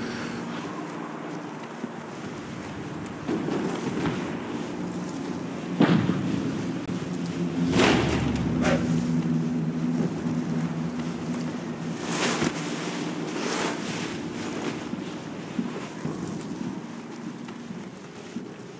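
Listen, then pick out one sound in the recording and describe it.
Footsteps crunch softly on sandy ground.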